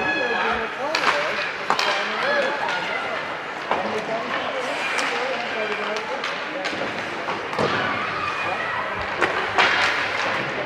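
Hockey sticks clack sharply against a puck in an echoing rink.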